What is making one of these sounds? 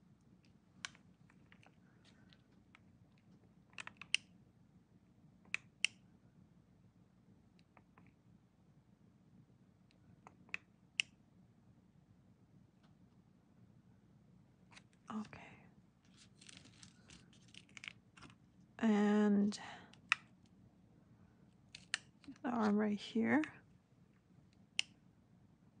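A small tool taps and scrapes lightly against a plastic surface.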